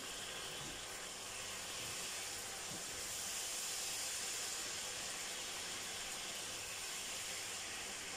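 Dishes clink softly in a sink.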